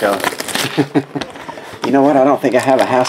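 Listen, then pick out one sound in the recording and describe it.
Plastic wrapping crinkles as a pack is torn open.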